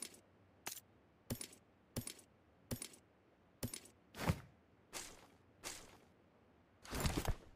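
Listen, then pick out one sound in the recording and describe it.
Short clicking pickup sounds from a video game come again and again.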